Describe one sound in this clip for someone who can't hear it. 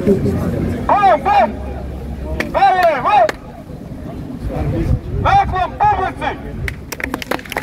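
A group of young men and women shouts loudly in unison outdoors.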